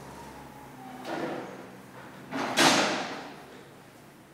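A chair scrapes across a hard floor.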